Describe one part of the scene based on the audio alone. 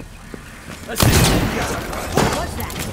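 A gun fires loudly nearby.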